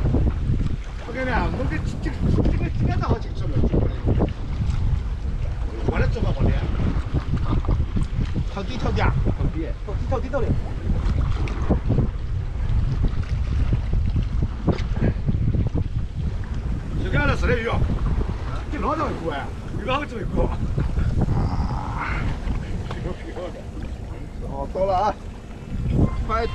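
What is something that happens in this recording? Men talk with animation close by.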